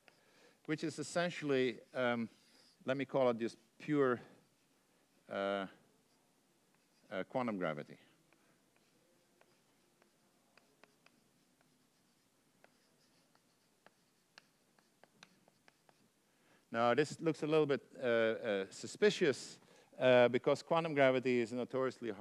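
An older man lectures calmly through a microphone, in bursts with pauses.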